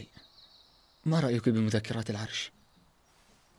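A young man speaks calmly and seriously.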